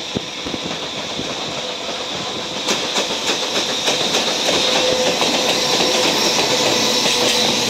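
An electric freight locomotive rolls past.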